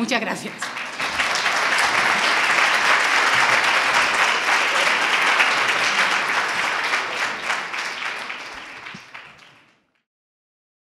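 An audience applauds loudly, then the applause fades away.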